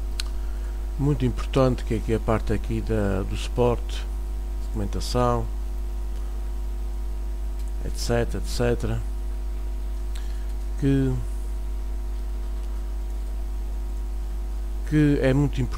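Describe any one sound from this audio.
A man talks calmly into a nearby microphone, in short bursts with pauses.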